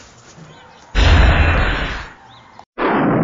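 An explosion booms suddenly.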